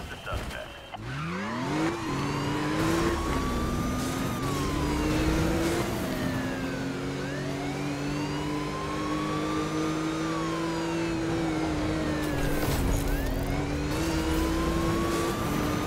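A police siren wails, rising and falling.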